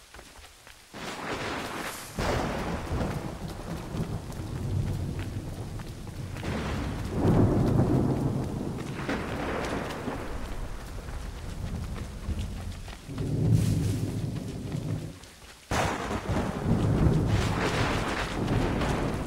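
Strong wind howls and gusts outdoors.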